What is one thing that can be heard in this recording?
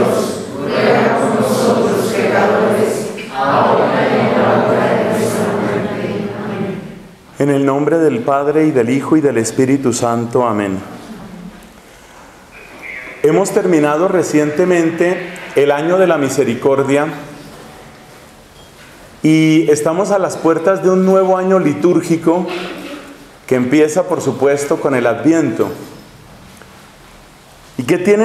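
A middle-aged man speaks calmly in an echoing hall.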